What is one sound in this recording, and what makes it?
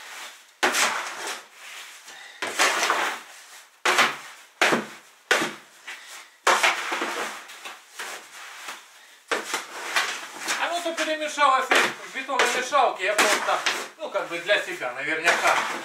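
A shovel scrapes and scoops loose material in bursts.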